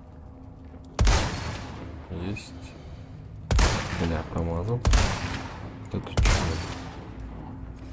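Rifle shots crack loudly, each followed by a rumbling echo.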